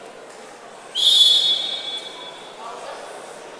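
A referee blows a sharp whistle blast.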